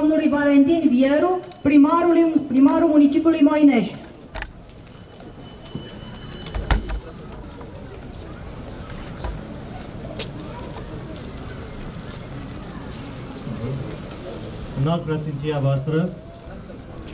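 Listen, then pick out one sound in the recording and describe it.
A man speaks through a microphone and loudspeakers outdoors.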